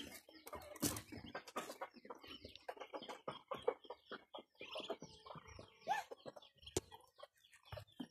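Ducks quack close by.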